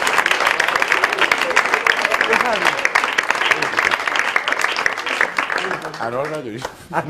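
An audience applauds loudly in a studio.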